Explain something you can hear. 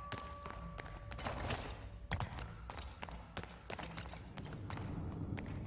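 Footsteps thud on stone as someone runs.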